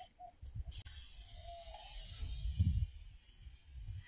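A fishing net swishes through the air as it is thrown.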